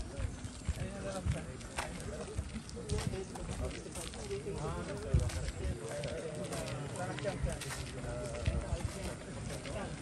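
Men talk casually nearby outdoors.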